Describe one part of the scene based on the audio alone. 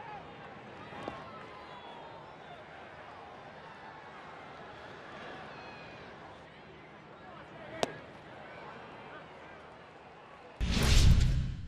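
A stadium crowd murmurs steadily in the distance.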